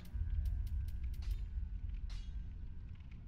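Soft menu clicks tick quickly one after another.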